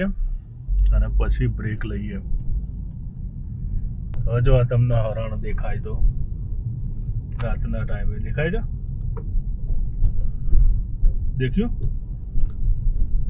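A car engine hums low and steady as the car drives along.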